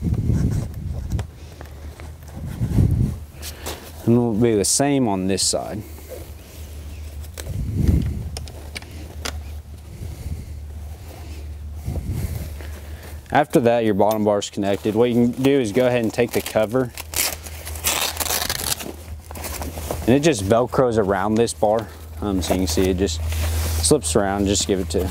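Stiff fabric rustles and crinkles as it is handled.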